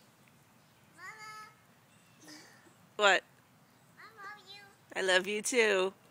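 A toddler squeals and laughs close by.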